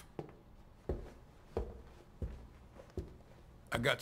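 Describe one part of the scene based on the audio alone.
Footsteps knock on a hard floor.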